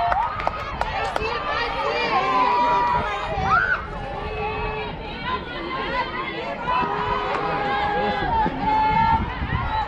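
Young girls and adults shout and cheer nearby outdoors.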